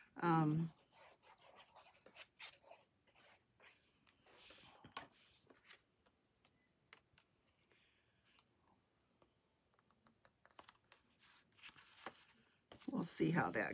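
Paper rustles and taps on a table.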